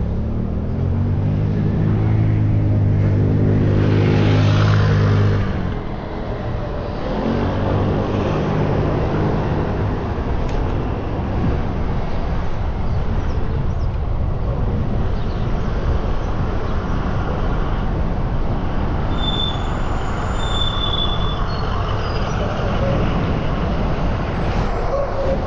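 Wind rushes loudly over the microphone.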